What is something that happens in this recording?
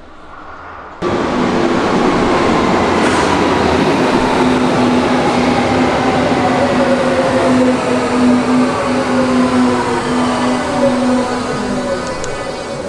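A subway train rushes into the station with a loud roar.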